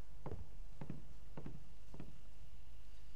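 Boots thud slowly on a wooden floor.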